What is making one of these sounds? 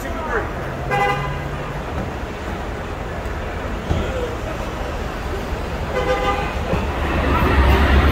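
Several adults talk in the background outdoors.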